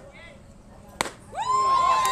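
A baseball smacks into a catcher's mitt with a sharp pop.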